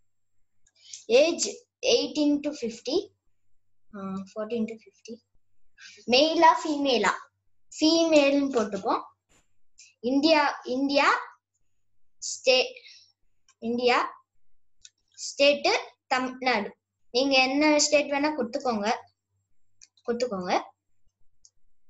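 A woman speaks calmly, close to a microphone, in short bursts.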